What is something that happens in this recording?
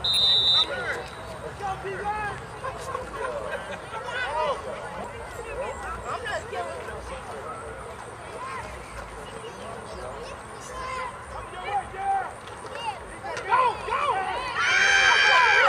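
A crowd of spectators talks and calls out outdoors.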